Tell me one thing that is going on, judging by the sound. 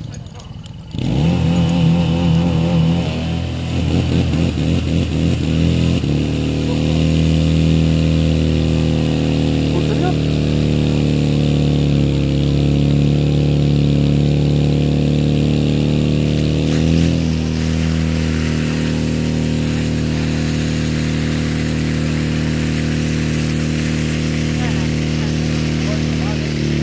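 A pump engine drones steadily close by.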